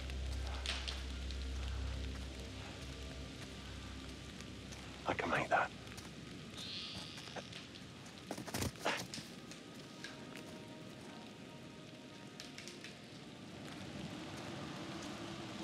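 Footsteps crunch slowly on gravel and leaves.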